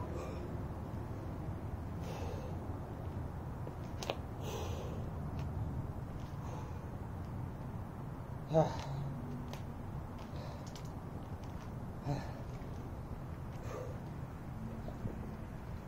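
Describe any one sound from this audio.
A man drinks from a bottle.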